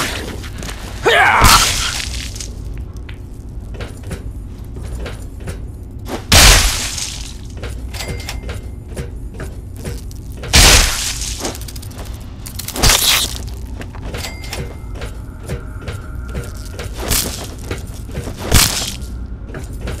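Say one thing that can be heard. A clawed gauntlet slashes and strikes a creature's flesh.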